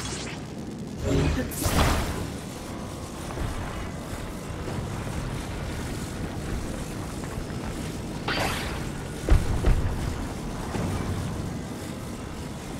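A magical power crackles and hums.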